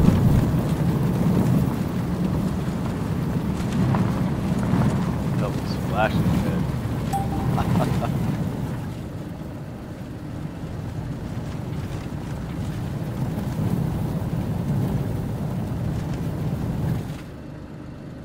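A vehicle engine rumbles steadily while driving over rough ground.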